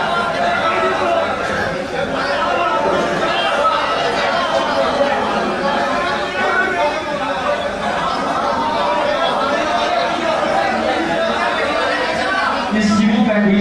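A crowd cheers and calls out loudly.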